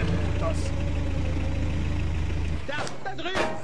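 A vehicle engine idles with a low, steady rumble.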